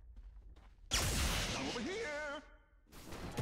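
A spell crackles and bursts with an electric zap.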